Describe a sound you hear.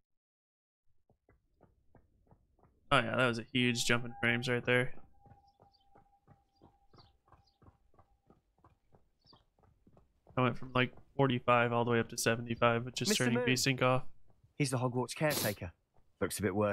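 Footsteps patter quickly on stone paving.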